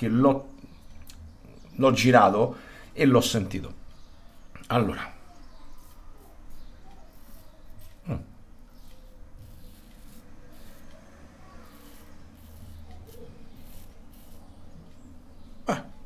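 A razor scrapes over stubble.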